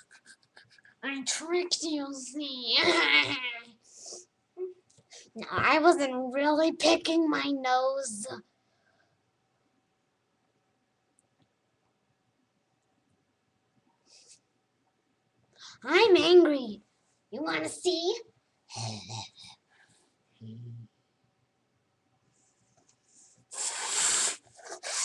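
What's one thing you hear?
A young girl talks animatedly close to a microphone.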